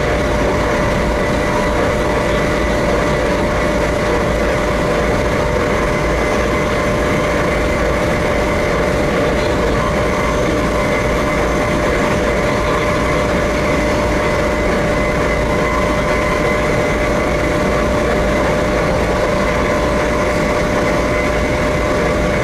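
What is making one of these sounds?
A train rumbles and hums steadily along the track.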